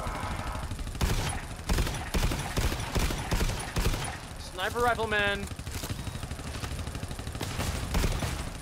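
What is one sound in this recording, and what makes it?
Rapid gunfire bursts ring out.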